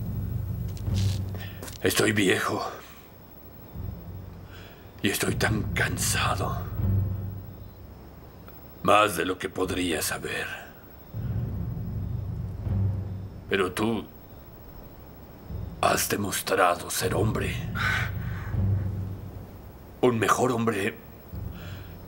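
An older man speaks slowly and sternly, close by.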